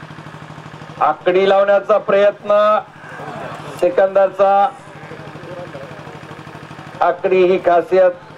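A man calls out loudly over a loudspeaker in short bursts.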